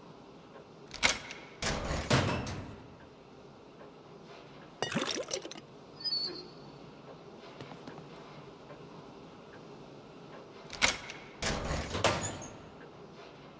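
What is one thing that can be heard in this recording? A heavy metal door unlatches with a clank and creaks open.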